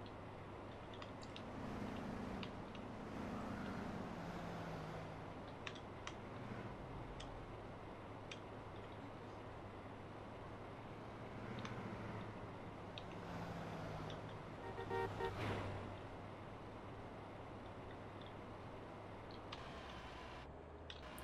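A truck engine hums steadily as it drives along a road.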